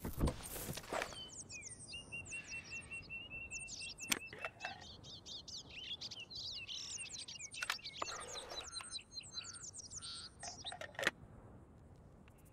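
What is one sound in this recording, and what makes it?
Birds chirp and trill nearby outdoors.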